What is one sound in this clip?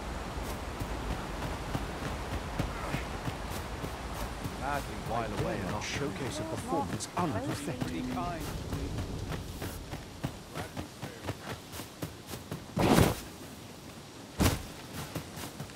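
Footsteps patter quickly on dirt and grass.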